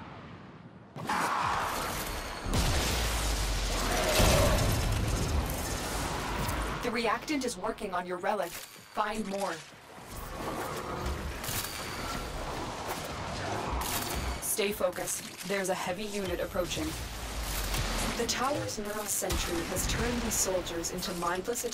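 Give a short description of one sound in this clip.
Heavy impacts and slashes crash in a video game's melee combat.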